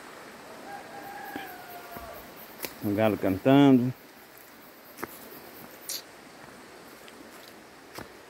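A stream flows gently over rocks.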